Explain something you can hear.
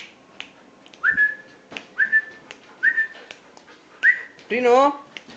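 A cat gives short, high chirps again and again.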